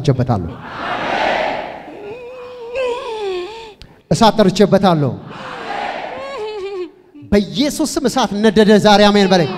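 A man preaches loudly and with passion through a microphone and loudspeakers.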